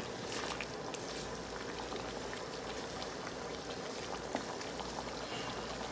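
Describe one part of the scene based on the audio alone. A wooden spatula scrapes and stirs food in a pan.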